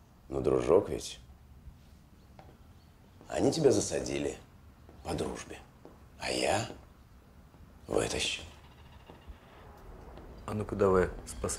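A man speaks calmly and deliberately nearby.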